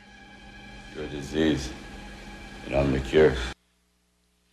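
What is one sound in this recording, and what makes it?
A man speaks in a low, drawling voice.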